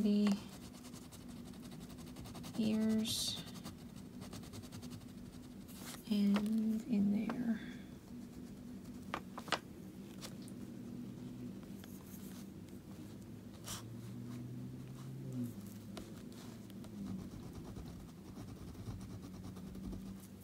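A crayon scratches and rubs on paper.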